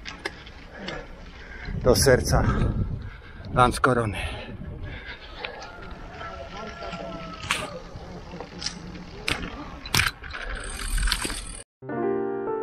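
Bicycle tyres rattle over cobblestones.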